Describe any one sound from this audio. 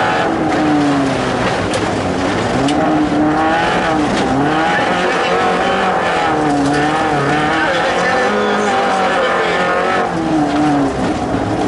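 Tyres rumble over a rough dirt track.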